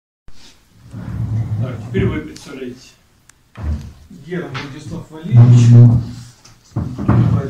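A man speaks nearby in a calm conversational voice.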